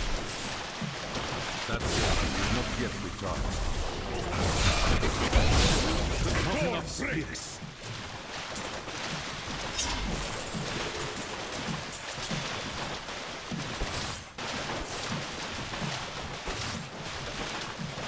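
Spells burst and crackle in a rapid fight.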